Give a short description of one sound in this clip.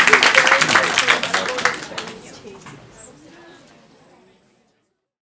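An audience applauds in a room, then the applause fades away.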